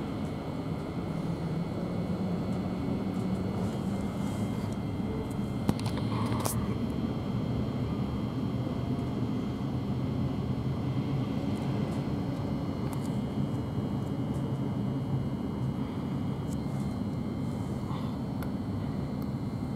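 A train rumbles steadily along the tracks.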